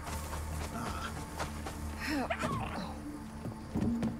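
Footsteps run across sand and stone.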